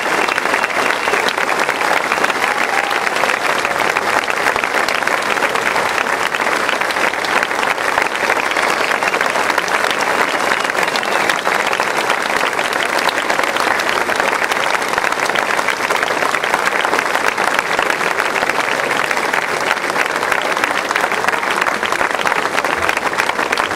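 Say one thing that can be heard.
A large crowd applauds loudly and steadily outdoors.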